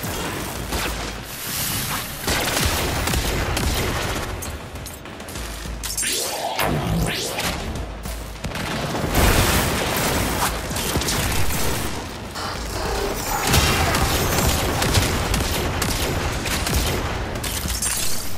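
Gunfire and explosions crackle and boom in rapid bursts.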